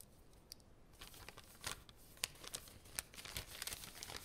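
Paper crinkles and rustles as a scroll is unrolled.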